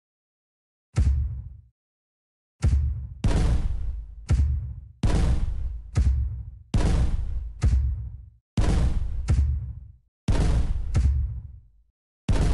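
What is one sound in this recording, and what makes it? A game cannon fires with repeated booming thuds.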